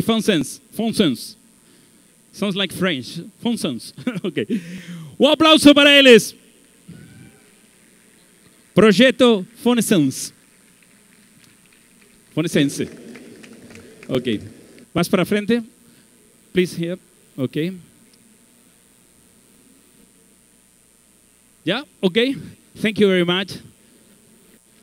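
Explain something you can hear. A man speaks with animation through a microphone and loudspeakers in a large echoing hall.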